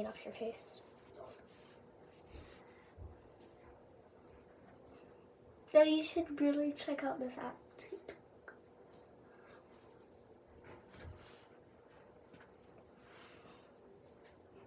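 A tissue rubs against a face.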